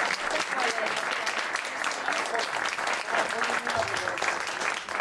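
A keyboard plays along.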